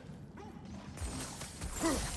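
A magical beam hums and crackles.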